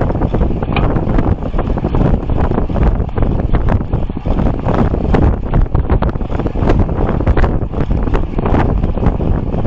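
Strong wind buffets a microphone in loud, gusty rumbles.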